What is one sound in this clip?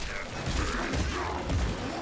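Fire roars in a burst of flame.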